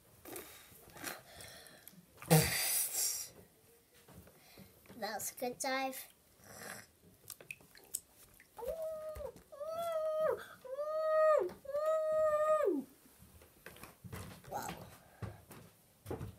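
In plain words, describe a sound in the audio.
Water splashes and sloshes as small hands stir it.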